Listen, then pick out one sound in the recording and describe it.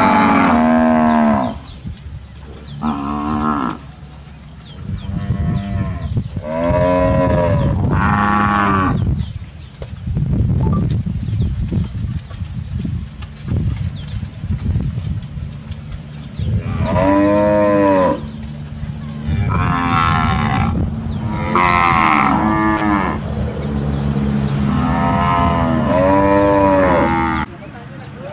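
Cattle moo loudly and repeatedly, close by.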